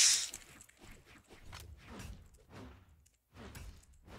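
Quick video game punches and slashes thud and swish during a fight.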